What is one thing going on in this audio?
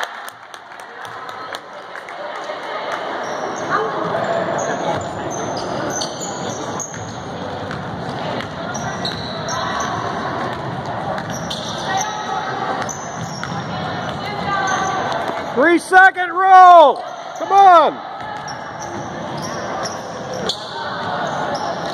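Spectators chatter in a large echoing gym.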